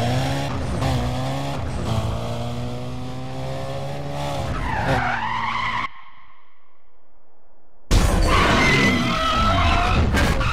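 A car engine roars at high revs, its pitch holding steady and then sweeping.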